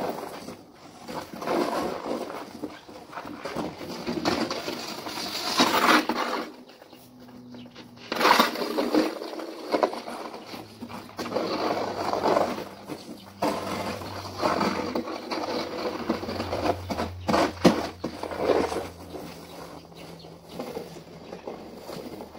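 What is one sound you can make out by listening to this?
A snow shovel scrapes over a frozen driveway outdoors.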